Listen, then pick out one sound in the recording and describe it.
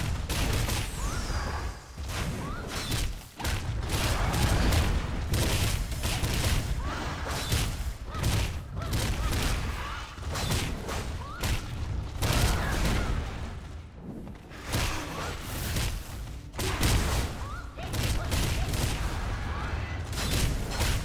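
Weapon strikes clash and thud rapidly against a monster.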